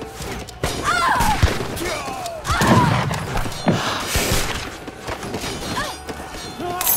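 Weapons clash and clank in a skirmish.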